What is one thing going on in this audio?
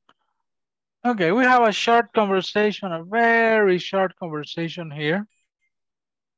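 A woman speaks clearly over an online call.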